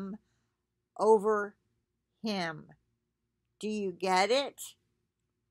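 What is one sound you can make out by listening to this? A middle-aged woman speaks close up in short, animated phrases with pauses between them.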